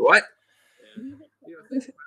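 An older man laughs over an online call.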